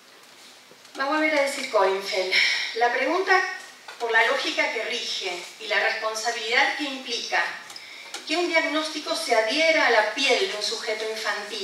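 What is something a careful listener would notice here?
A woman speaks calmly into a microphone in a large room.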